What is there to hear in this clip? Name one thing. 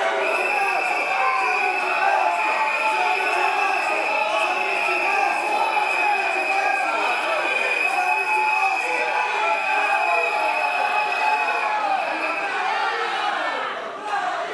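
A crowd chants and shouts loudly in a large echoing hall.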